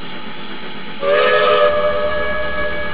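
A steam locomotive lets out a short, hissing whistle.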